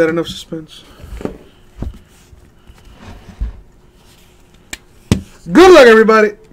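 Hands bump and shuffle a plush toy on a table.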